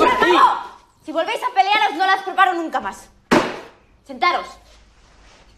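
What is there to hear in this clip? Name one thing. A young woman speaks sternly.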